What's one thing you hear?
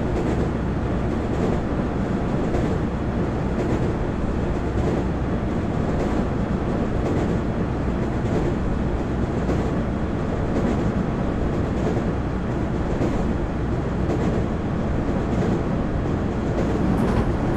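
Train wheels click rhythmically over rail joints.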